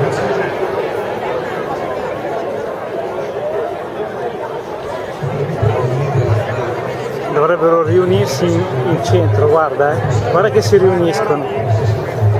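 Jet planes roar distantly overhead.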